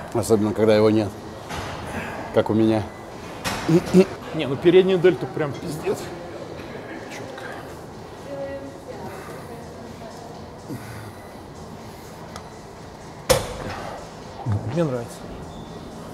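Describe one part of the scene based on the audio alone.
A man grunts and strains with effort.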